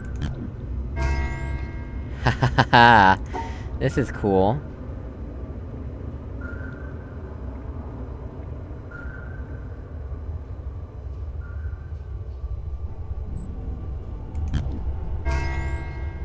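A soft electronic tone sounds as a puzzle line resets.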